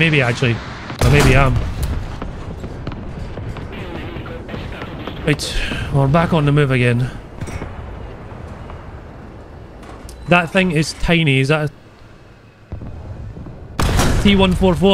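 A tank cannon fires with a loud boom.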